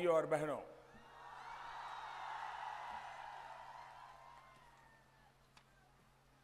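A large crowd cheers loudly outdoors, then fades.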